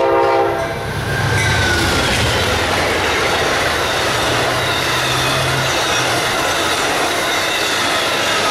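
A passenger train rumbles and clatters past on the rails.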